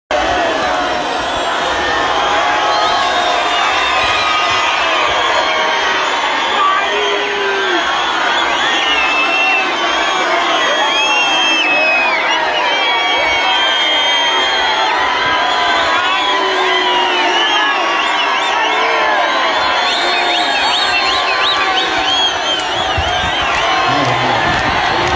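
Many voices ululate in high, wavering cries within a crowd.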